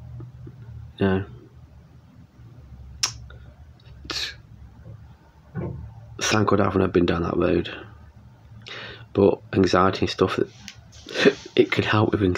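A middle-aged man talks calmly and close to a microphone, with pauses.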